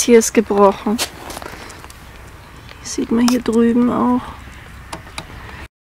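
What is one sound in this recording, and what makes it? A metal latch clicks and rattles.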